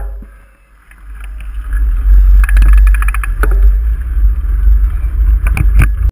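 Wind buffets the microphone as a bicycle rolls off.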